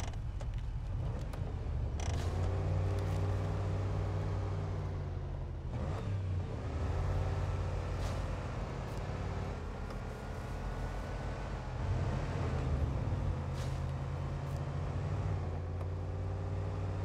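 A truck engine rumbles and revs steadily.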